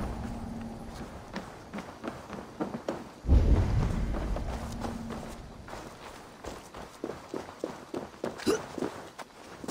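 Footsteps run quickly over wooden boards and gravel.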